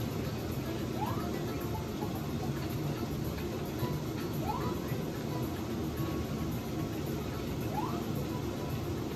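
Short rising game sound effects chirp from a television loudspeaker.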